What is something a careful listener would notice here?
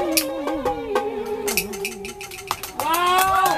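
A woman sings into a microphone through a loudspeaker.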